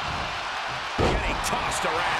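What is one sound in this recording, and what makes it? A heavy body slams onto a wrestling ring with a loud thud.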